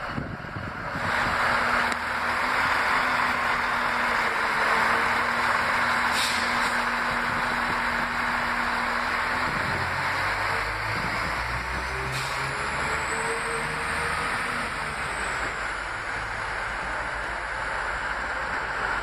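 A train's engine hums and rumbles steadily nearby.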